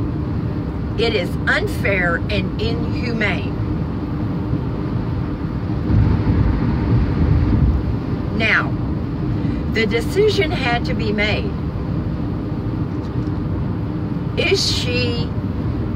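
An elderly woman speaks close by, calmly and in short bursts.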